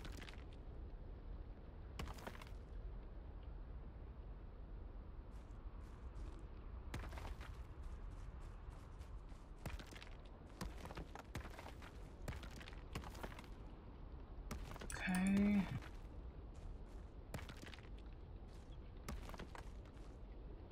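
A sledgehammer strikes stone with sharp cracking blows.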